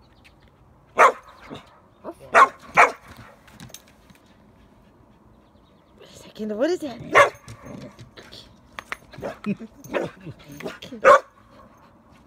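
A dog barks sharply a few times nearby.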